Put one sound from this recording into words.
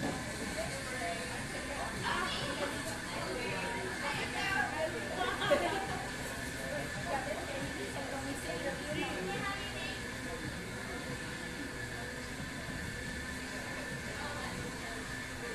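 A crowd of men and women chatter quietly at a distance.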